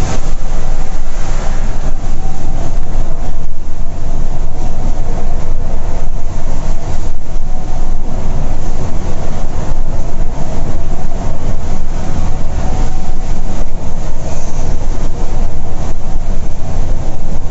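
A diesel coach engine drones at highway speed, heard from the cab.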